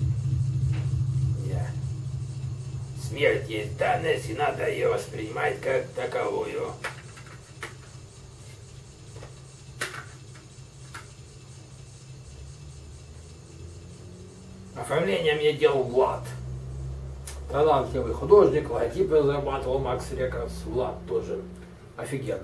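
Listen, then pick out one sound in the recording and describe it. A plastic case clicks and rattles in a man's hands.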